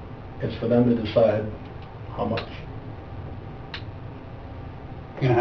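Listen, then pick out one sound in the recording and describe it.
A man speaks calmly in short phrases, heard through a distant room microphone.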